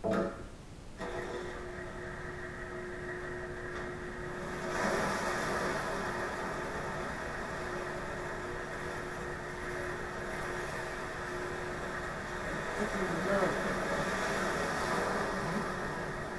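A motorized hoist hums as it winds a cable.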